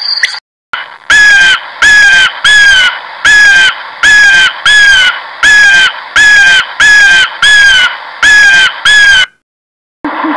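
An eagle gives repeated high, sharp screams.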